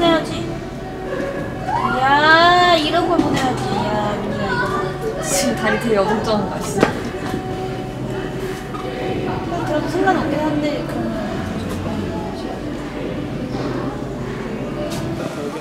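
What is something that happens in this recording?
Young women chat and laugh close by.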